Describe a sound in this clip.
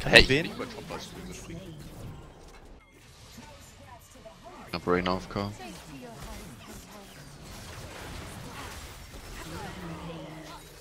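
Fantasy battle sound effects of spells and strikes burst out in quick succession.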